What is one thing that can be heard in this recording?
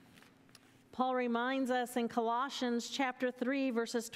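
A woman reads aloud calmly into a microphone in an echoing hall.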